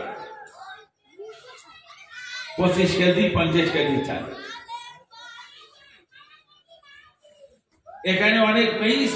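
An elderly man preaches with feeling into a microphone, heard through loudspeakers.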